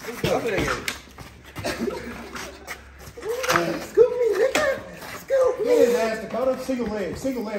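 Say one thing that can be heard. Shoes scuff and shuffle on a hard floor.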